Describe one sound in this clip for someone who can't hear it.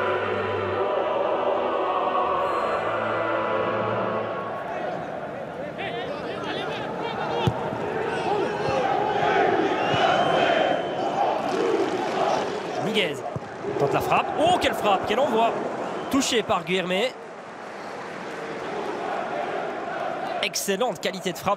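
A large stadium crowd sings and chants loudly.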